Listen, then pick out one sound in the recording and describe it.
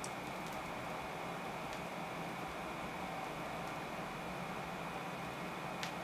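A stylus crackles and pops softly in the record's groove.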